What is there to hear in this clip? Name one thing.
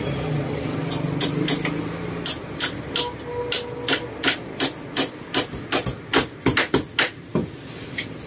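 A sponge scrubs a woven cane chair back with quick strokes.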